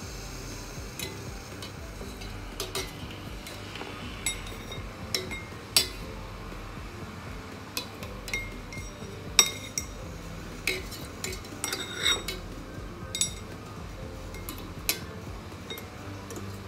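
A metal strainer clinks against the rim of a steel pot.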